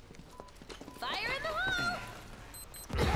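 A young woman shouts a warning.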